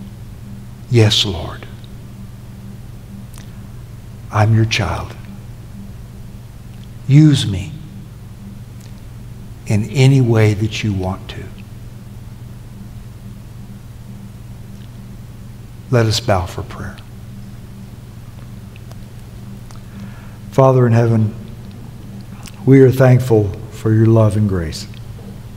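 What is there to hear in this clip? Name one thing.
An elderly man speaks slowly through a microphone in short phrases with long pauses.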